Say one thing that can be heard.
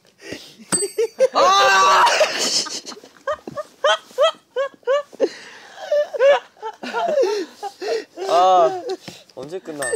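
Young men laugh loudly nearby.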